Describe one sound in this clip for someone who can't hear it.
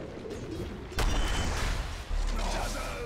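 A heavy magical blast booms.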